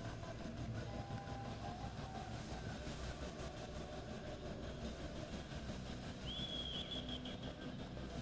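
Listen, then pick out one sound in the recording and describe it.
A horse's hooves thud on soft dirt as it lopes.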